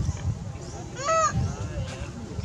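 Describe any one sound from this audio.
A baby monkey squeaks softly while nursing.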